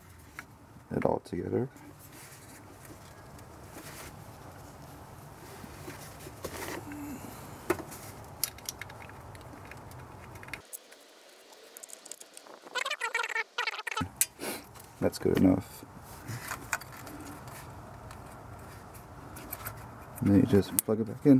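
Plastic engine parts click and rattle under a hand.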